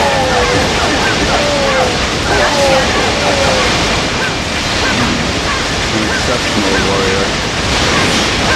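Swords slash and clash rapidly in a battle.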